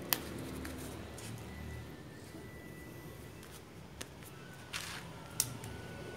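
A foam sleeve rustles as hands handle it.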